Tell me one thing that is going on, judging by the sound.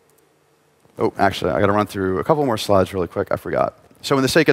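A man speaks with animation into a microphone in a large hall.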